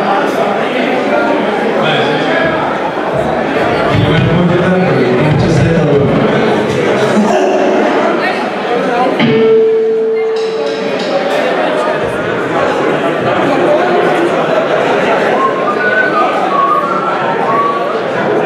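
A drum kit is played.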